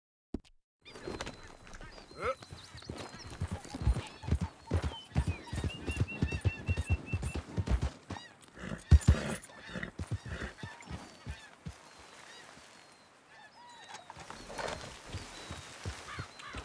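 A horse's hooves thud on a dirt path.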